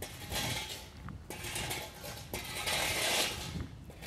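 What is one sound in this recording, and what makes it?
Brooms scrape and sweep across gravel.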